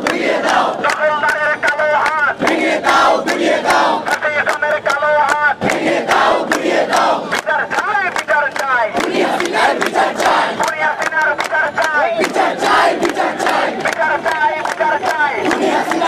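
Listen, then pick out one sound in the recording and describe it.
A large crowd of young women and men chants loudly in rhythm outdoors.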